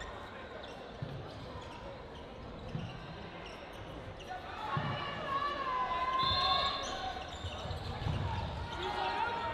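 A ball thuds against the floor and walls in an echoing hall.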